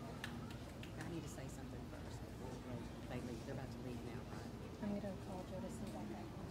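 A woman speaks calmly through a loudspeaker in a large hall.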